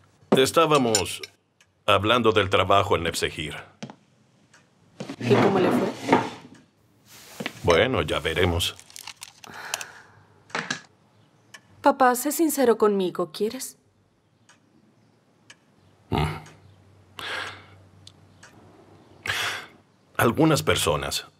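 A middle-aged man speaks in a low, tense voice close by.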